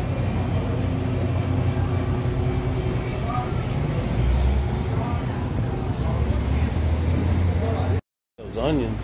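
Refrigerated display cases hum.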